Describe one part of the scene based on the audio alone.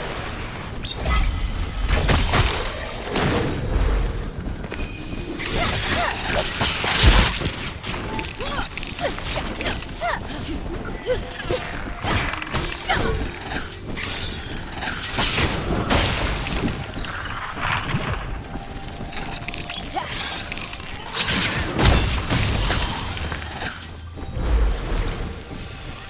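Magical blasts burst with loud, bright whooshes.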